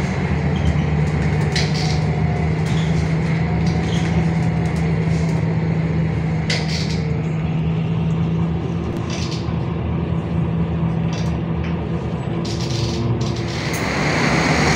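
A bus engine hums steadily from inside a moving bus.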